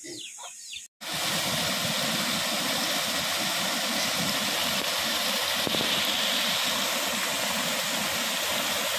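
Water rushes and splashes over a small weir.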